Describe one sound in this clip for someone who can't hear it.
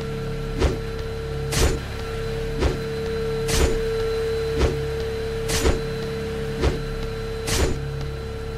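Game weapons blast in a steady, regular rhythm, about once a second.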